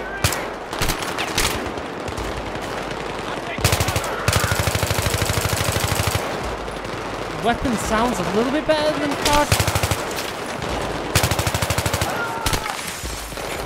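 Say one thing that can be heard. Rapid automatic gunfire rattles in bursts.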